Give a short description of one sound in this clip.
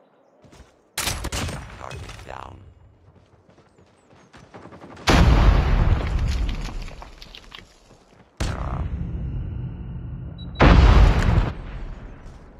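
Gunshots fire in loud, sudden bursts.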